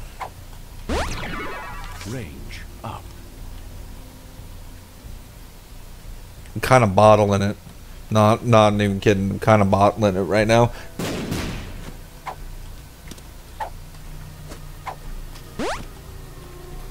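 A rising electronic chime sounds as a video game item is picked up.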